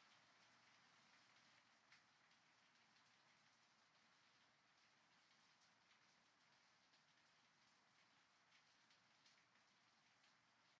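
Steady rain falls and patters on stone and water.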